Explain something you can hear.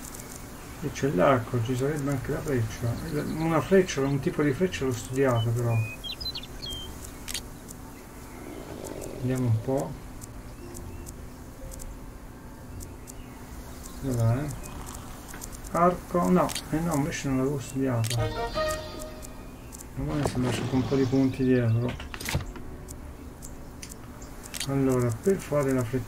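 A young man talks casually and with animation, close to a microphone.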